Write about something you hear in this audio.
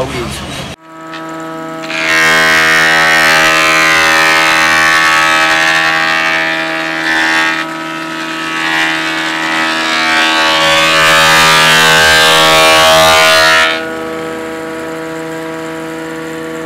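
An electric wood planer motor hums steadily.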